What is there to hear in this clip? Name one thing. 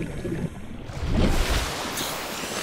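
Water splashes loudly as something breaks through the surface.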